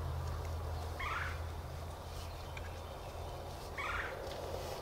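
A turkey gobbles briefly, twice.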